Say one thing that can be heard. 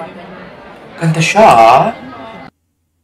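A young man exclaims loudly in surprise, close to a microphone.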